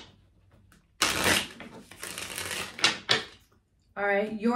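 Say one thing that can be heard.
Cards shuffle and riffle in a woman's hands.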